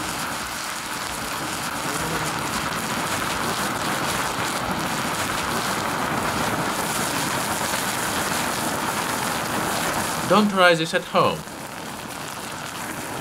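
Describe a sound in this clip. A burning chemical reaction roars and hisses steadily.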